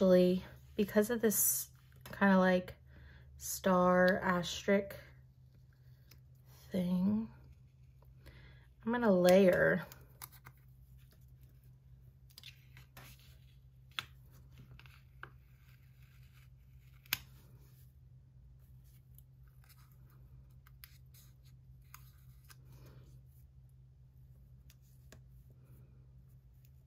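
Tweezers peel and press small paper stickers with faint rustles and taps.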